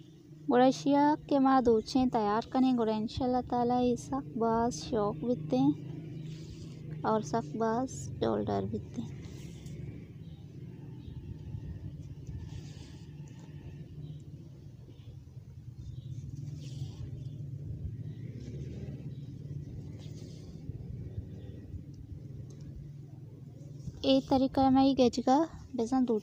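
Thread rasps softly as it is pulled through cloth.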